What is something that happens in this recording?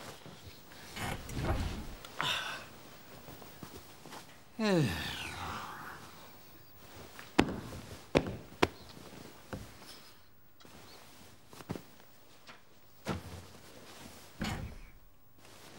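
A man thumps a pillow with his fist.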